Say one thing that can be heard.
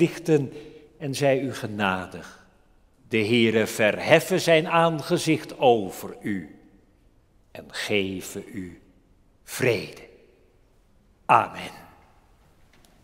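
An elderly man speaks with animation through a microphone in an echoing hall.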